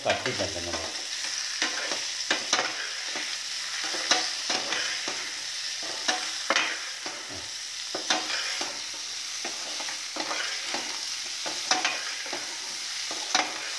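A metal spatula scrapes and clinks against a frying pan.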